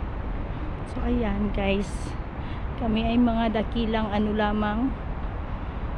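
A woman talks nearby outdoors.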